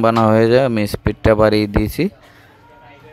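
A phone plays a short startup chime.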